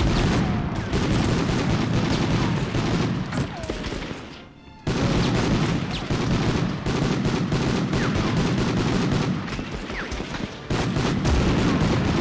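A machine gun fires rapid bursts that echo in a large hall.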